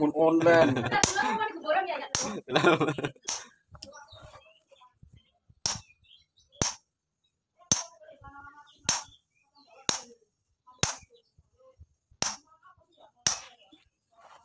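A hammer strikes a metal chisel against stone in sharp, ringing taps.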